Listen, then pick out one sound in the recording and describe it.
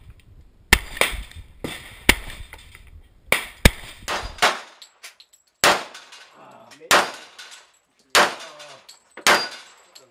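Gunshots crack loudly outdoors, one after another, echoing off nearby hills.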